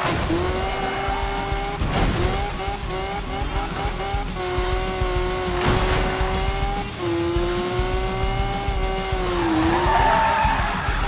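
A racing car engine revs high, dropping in pitch with each gear shift.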